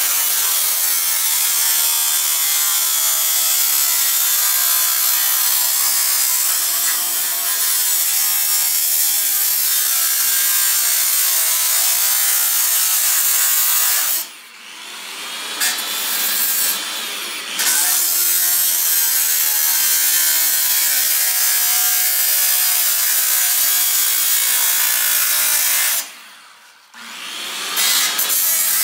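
An angle grinder screams loudly as it cuts through metal, winding down and starting up again between cuts.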